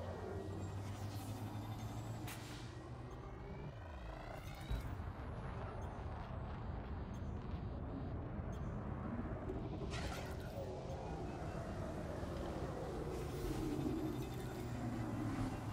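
Laser weapons fire in short bursts.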